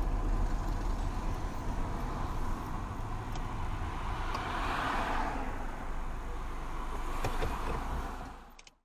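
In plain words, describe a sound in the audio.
A car engine hums with tyres rumbling on the road as the car slows down.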